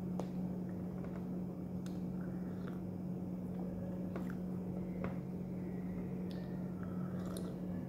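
A woman slurps a drink from a mug.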